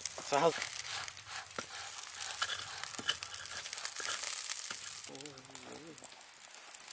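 Wood crackles and pops in a fire.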